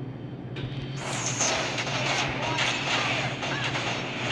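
Game fight effects crash and blast loudly.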